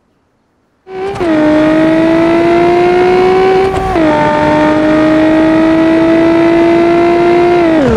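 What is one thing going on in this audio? A sports car engine roars loudly at high revs.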